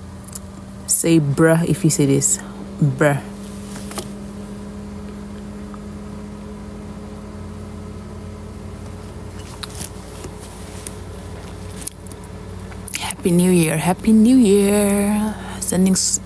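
A young woman talks casually close by.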